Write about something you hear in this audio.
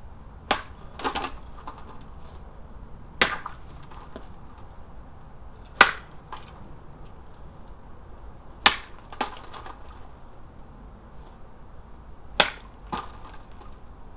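Liquid splashes onto the ground.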